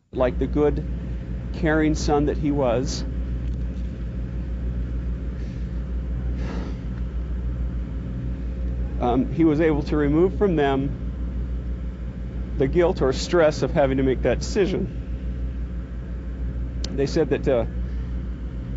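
A man speaks slowly and haltingly into a microphone, with long pauses.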